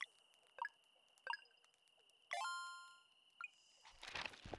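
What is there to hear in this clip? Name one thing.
Menu beeps chime as a game is saved.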